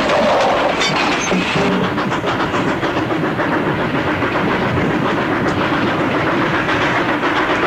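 Metal clanks.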